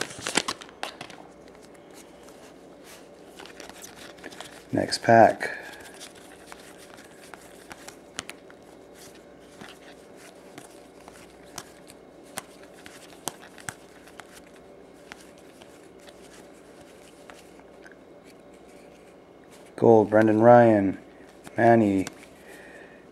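Trading cards flick and slide softly against each other.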